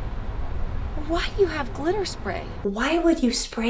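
A young woman talks emotionally into a close microphone.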